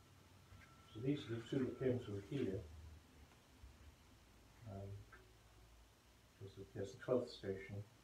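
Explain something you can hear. A middle-aged man speaks calmly nearby, in short bursts.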